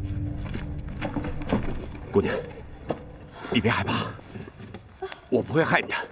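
A man speaks softly and reassuringly up close.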